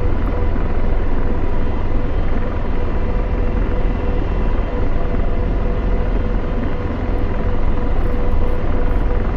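A helicopter's engine and rotor drone steadily from inside the cockpit.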